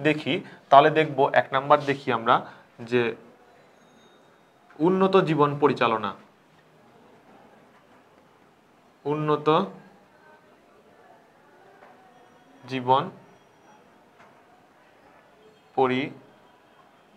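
A young man speaks calmly and clearly into a close microphone, in short phrases with pauses.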